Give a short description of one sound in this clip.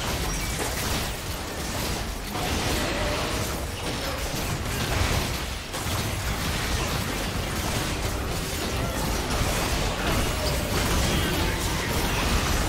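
Game spell blasts and hits crackle and boom in a busy fight.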